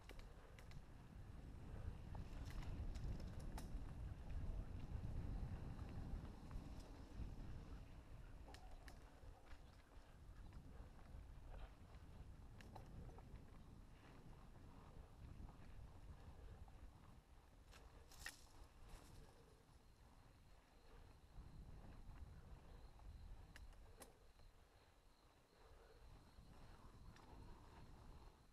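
Wind rumbles against the rider outdoors.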